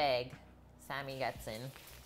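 A plastic bread bag rustles.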